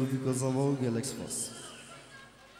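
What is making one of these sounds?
Music plays loudly over loudspeakers and then fades away.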